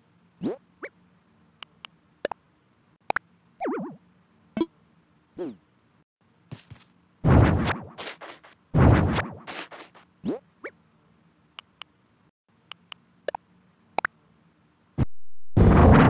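Short electronic blips and chirps sound as menu items are picked.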